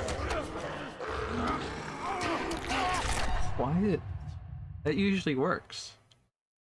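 A creature shrieks and gurgles in pain.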